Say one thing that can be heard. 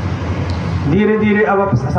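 A man gives instructions through a loudspeaker outdoors.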